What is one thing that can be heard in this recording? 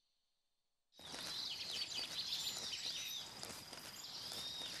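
Grass rustles as a soldier crawls through it.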